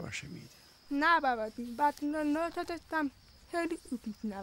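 A girl answers calmly, close by.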